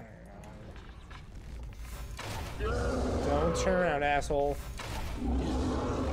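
A large beast growls deeply up close.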